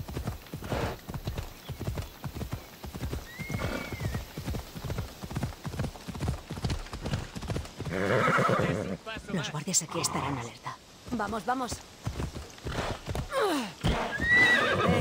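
A horse gallops with quick, thudding hoofbeats.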